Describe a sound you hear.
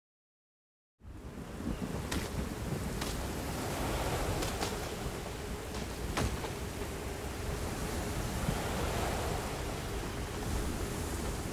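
Water roars and crashes steadily close by.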